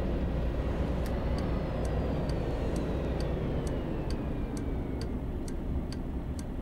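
A bus indicator ticks in a steady rhythm.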